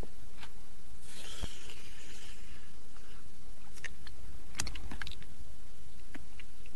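A man slurps loudly from a spoon.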